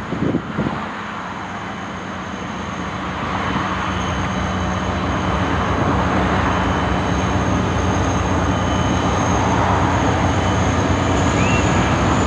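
A diesel locomotive engine hums steadily in the distance.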